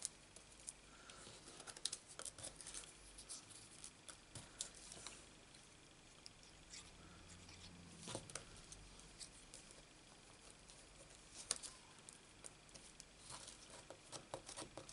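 Paper pieces rustle and tap softly on a tabletop.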